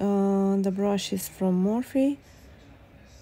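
A woman speaks in a drawn-out, sing-song voice close by.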